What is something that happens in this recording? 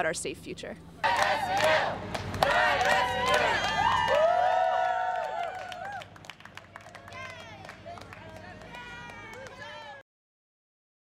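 A crowd cheers and calls out outdoors.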